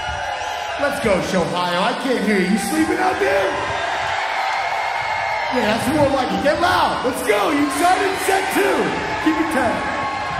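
A large crowd cheers.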